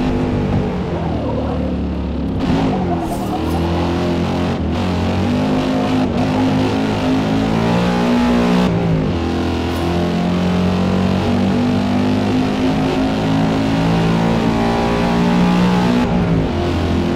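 A sports car engine accelerates hard, its pitch climbing through each gear and dropping at every upshift.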